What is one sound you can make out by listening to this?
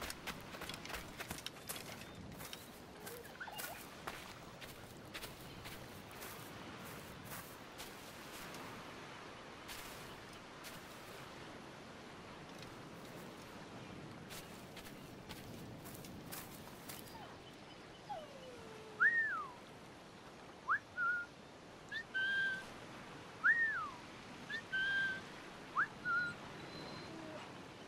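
Waves wash gently against a shore.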